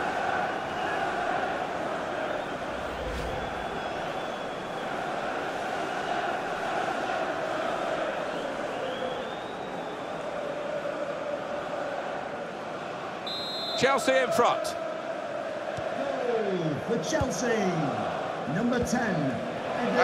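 A large stadium crowd cheers and chants steadily.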